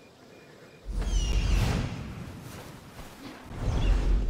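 An eagle screeches.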